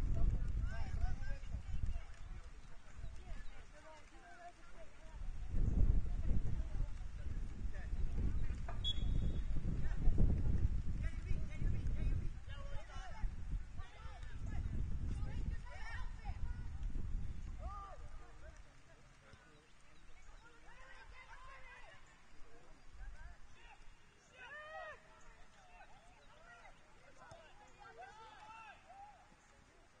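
Young players shout and call out across a distant field.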